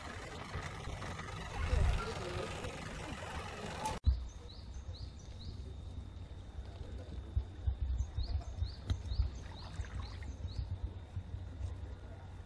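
A radio-controlled model boat moves through water, its wake lapping.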